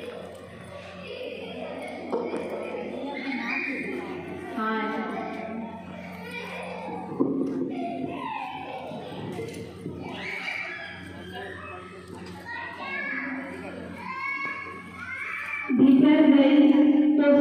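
A group of women sing together nearby.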